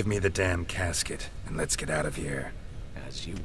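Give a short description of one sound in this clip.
A man speaks in a low, gruff voice.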